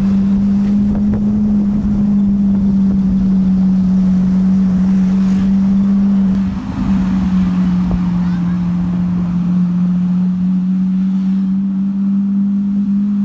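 An engine drones steadily close by.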